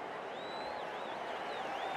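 A large crowd murmurs steadily in the distance.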